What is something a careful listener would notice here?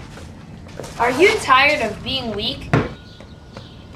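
A young boy talks loudly close by.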